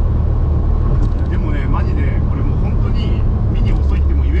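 A man speaks calmly close by, heard over the engine.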